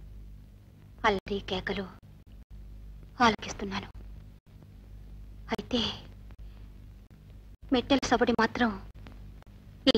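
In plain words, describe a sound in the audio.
A woman speaks quietly nearby in short phrases.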